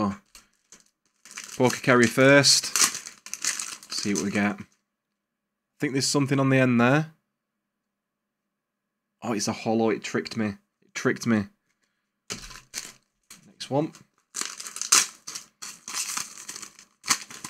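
Foil card packs crinkle and tear in a man's hands.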